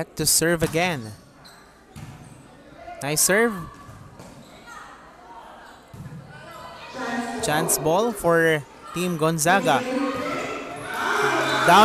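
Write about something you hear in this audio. A volleyball is struck by hand with sharp slaps.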